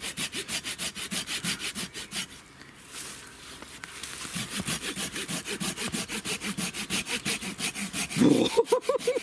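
A hand saw cuts through wood with quick, even strokes.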